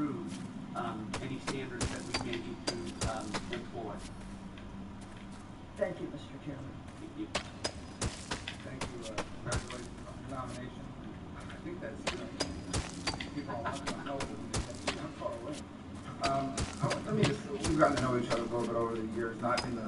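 A pickaxe chips at stone blocks with quick, sharp taps.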